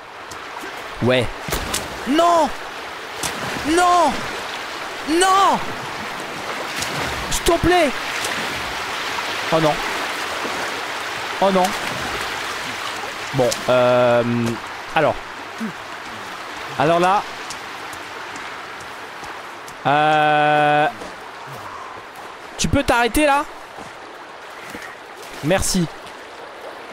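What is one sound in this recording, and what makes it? A fast river rushes and churns steadily.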